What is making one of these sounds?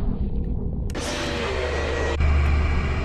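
Loud static hisses and crackles.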